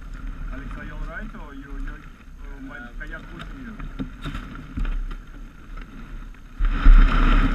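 Dry reeds rustle and scrape against a kayak hull.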